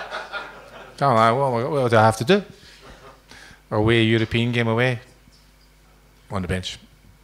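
A man speaks with animation into a microphone through loudspeakers, in a room with some echo.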